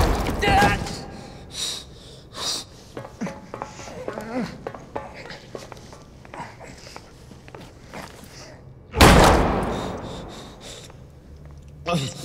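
A man groans weakly close by.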